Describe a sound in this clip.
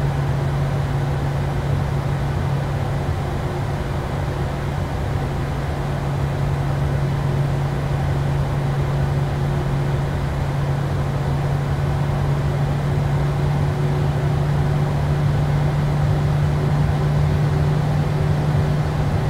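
Airliner wheels rumble over the pavement.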